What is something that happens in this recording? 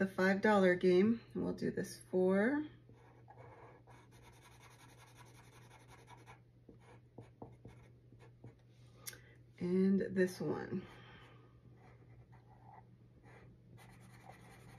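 A felt-tip marker scratches and squeaks softly across a card.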